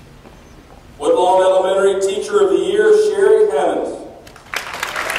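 A man announces a name through a loudspeaker in a large echoing hall.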